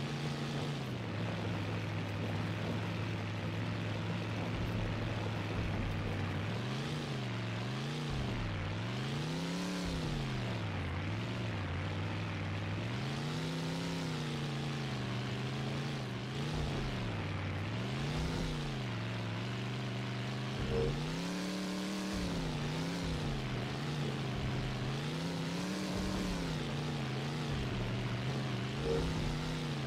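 A game car engine drones and revs up and down.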